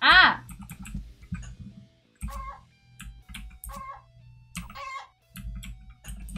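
Short electronic game sound effects chirp and blip repeatedly.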